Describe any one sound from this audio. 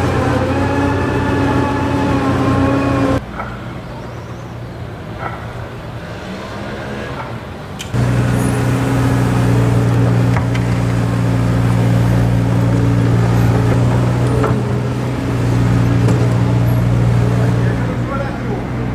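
A diesel excavator engine rumbles steadily nearby.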